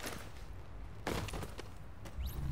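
A heavy thud sounds as a body lands in snow.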